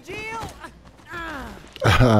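A body tumbles and thuds onto stone ground.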